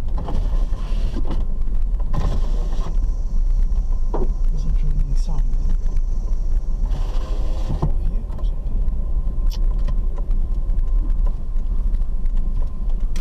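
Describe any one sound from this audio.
Tyres rumble and crunch over a rough dirt road.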